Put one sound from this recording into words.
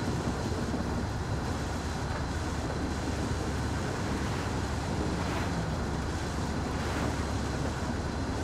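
A heavy truck engine rumbles steadily at speed.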